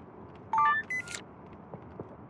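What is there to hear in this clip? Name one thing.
A bright rising chime plays.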